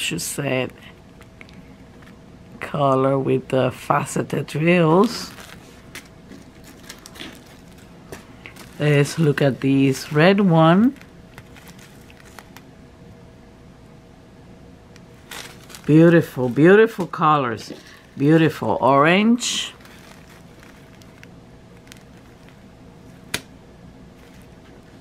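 A plastic bag of small beads crinkles in handling.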